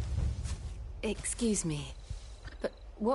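A young woman asks a question calmly.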